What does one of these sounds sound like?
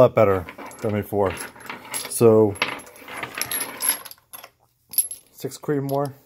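Metal cartridges clink together in a hand.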